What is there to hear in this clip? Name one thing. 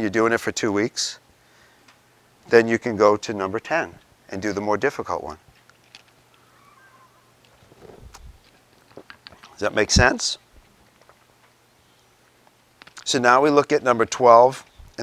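A middle-aged man speaks calmly to a room, pausing between phrases.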